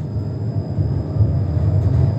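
Another tram passes close by.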